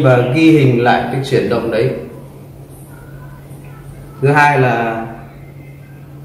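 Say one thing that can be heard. A young man speaks calmly and clearly close by.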